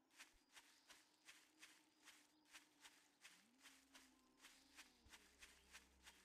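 Footsteps swish quickly through grass.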